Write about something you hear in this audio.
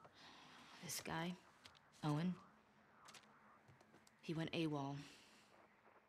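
A young woman speaks quietly and calmly close by.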